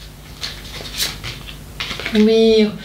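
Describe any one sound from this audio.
Playing cards shuffle and rustle in hands.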